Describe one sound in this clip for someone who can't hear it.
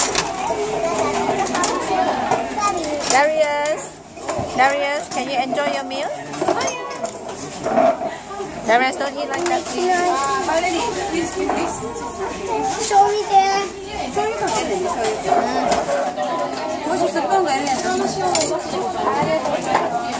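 A crowd of people chatters in a busy room.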